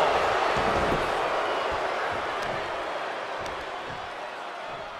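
Bodies thud onto a wrestling ring mat.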